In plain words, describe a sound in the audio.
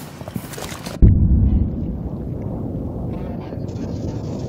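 A loud blast bursts and rings out.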